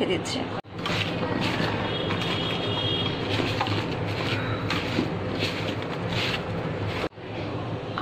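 Hands toss and squish chunks of vegetable in a bowl.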